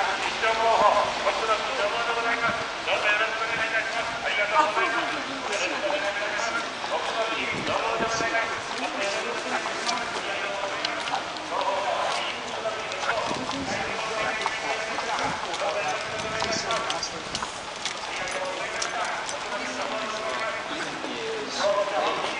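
A crowd of people talks and chatters nearby, outdoors.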